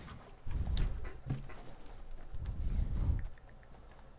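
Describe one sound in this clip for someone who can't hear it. Footsteps patter across grass.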